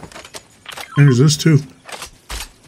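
A man speaks briefly and loudly into a close microphone.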